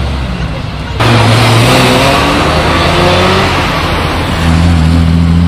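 A Ferrari Testarossa's flat-twelve engine roars as the car accelerates away.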